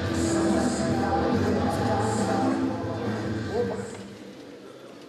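Men shout loudly in encouragement in an echoing hall.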